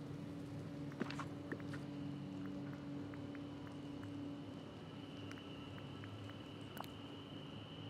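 Soft game menu clicks tick now and then.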